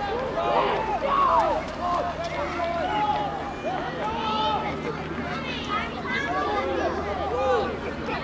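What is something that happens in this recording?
Many young players shout and call to each other from across an open field.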